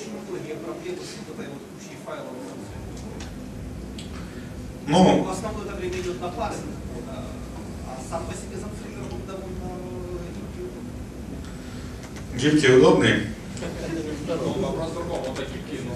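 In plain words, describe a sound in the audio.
A young man speaks calmly through a microphone in an echoing hall.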